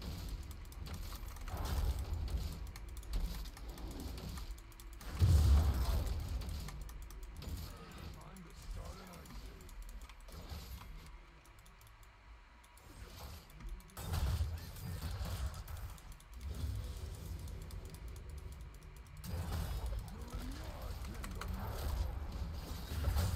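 Game spell effects whoosh and crash during a fight.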